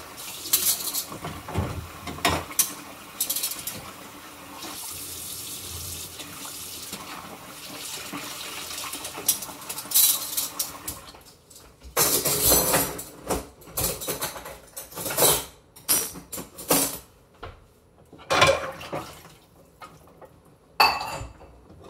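Dishes clatter and clink.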